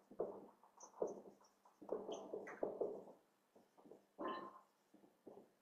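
A marker squeaks and scratches across a whiteboard.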